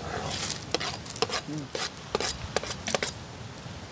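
A spoon scrapes chopped vegetables off a wooden board into a pot.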